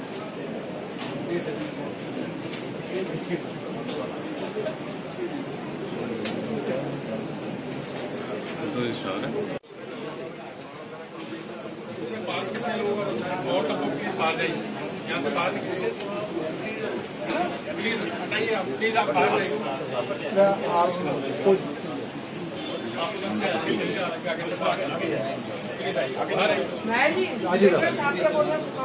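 A crowd of men talks and murmurs all around.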